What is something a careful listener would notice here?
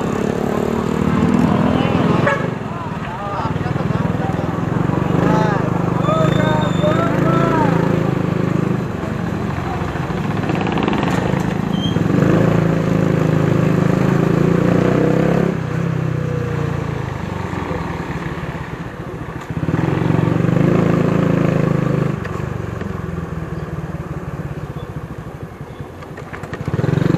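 A motorbike engine hums and revs while riding.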